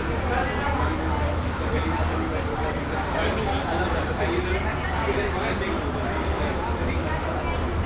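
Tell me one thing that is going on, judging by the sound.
A woman talks quietly close by.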